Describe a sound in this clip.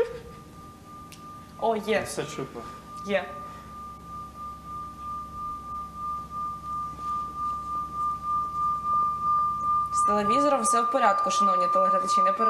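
A singing bowl rings with a steady, swelling hum as it is rubbed.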